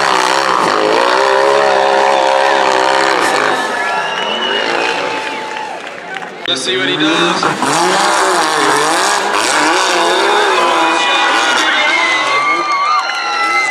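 A buggy engine roars and revs hard nearby.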